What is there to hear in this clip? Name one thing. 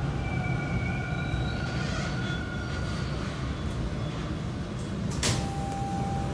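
Train wheels squeal faintly with thin, high tones.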